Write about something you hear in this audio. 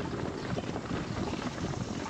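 Horses' hooves thud as riders gallop along a dirt road.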